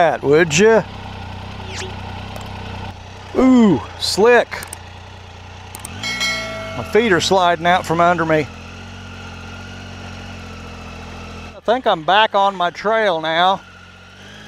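A motorcycle engine rumbles steadily at low speed.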